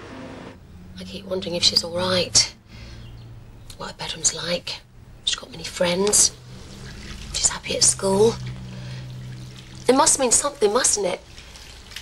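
A woman speaks calmly and softly close by.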